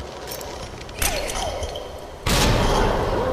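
Heavy blows thud against the ground.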